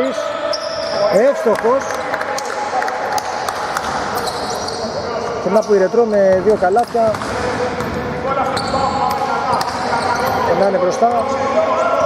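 A basketball thumps as it bounces on the court.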